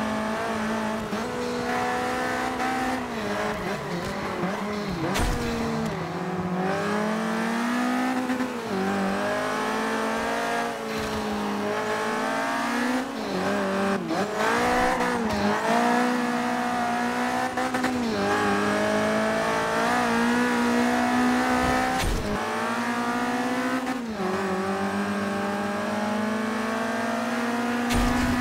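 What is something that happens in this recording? A racing car engine revs high, dipping at each gear shift.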